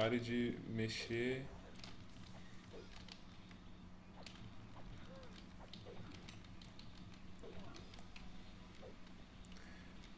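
Cartoon boxing punches thud and smack now and then.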